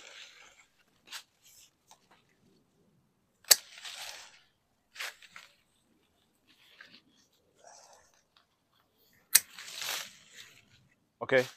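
Leaves rustle and twigs snap as a man reaches into a bush.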